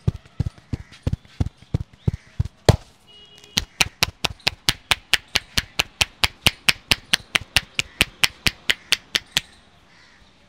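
Hands pat and slap rapidly and rhythmically on a man's head.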